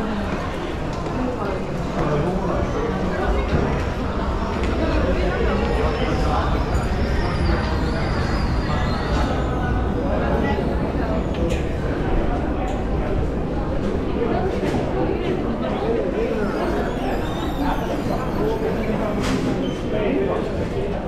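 A crowd of people chatter in a busy, echoing hall.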